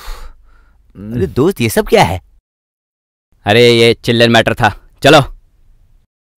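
Young men talk with animation, close by.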